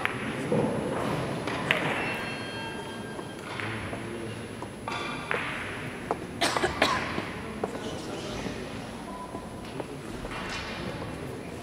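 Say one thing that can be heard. Billiard balls clack against each other and the cushions.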